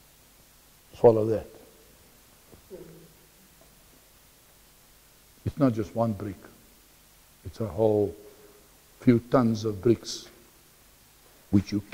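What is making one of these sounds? A middle-aged man speaks in short bursts with pauses, close by.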